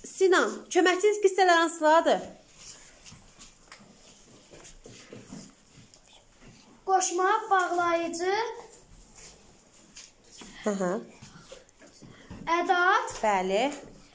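A young boy recites loudly in a singsong voice, close by, in bursts with pauses.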